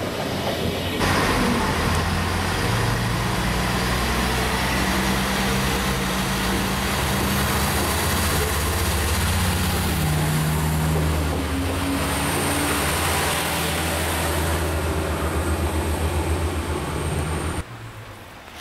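A diesel railcar engine rumbles steadily as the train pulls in.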